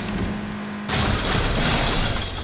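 Wooden boards smash against the car.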